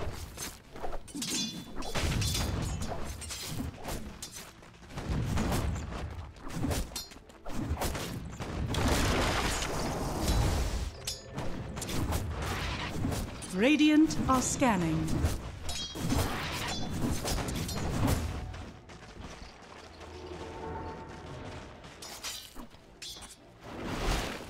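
Game spell effects and attack sounds clash and crackle.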